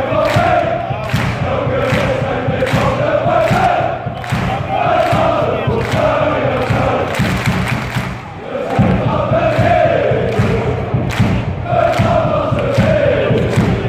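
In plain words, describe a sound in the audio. Football supporters clap in rhythm.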